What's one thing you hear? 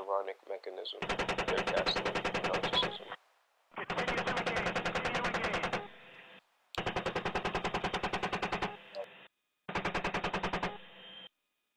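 A heavy cannon fires in rapid, loud bursts with short pauses.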